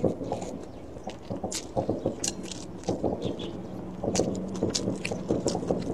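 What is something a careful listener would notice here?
A young woman chews and smacks her lips close to the microphone.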